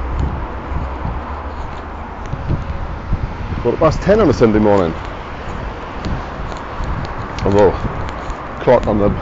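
Footsteps tap on a wet paved path.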